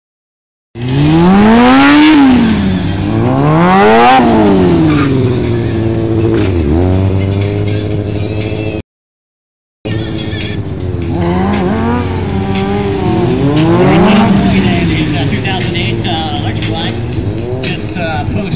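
A motorcycle engine revs up and down loudly, outdoors.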